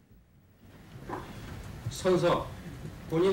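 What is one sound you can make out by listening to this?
A man reads aloud calmly into a microphone.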